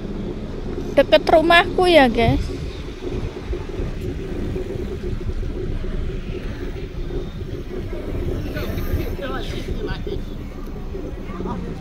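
A scooter's motor hums steadily as it rides along a street.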